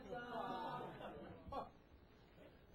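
A crowd chatters in a large room.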